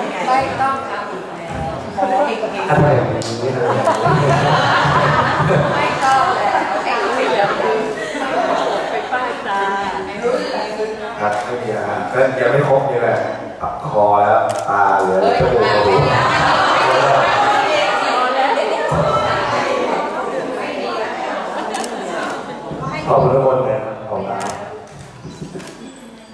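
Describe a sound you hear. A young man sings into a microphone through loudspeakers in an echoing hall.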